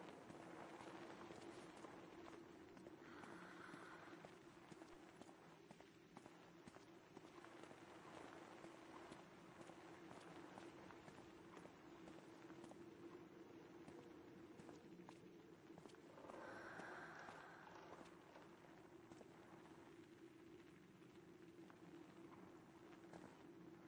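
Footsteps tread softly on stone.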